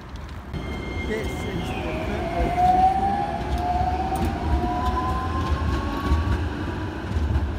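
Tram wheels squeal on the rails.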